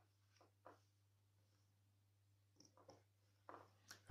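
Small plastic plugs click together.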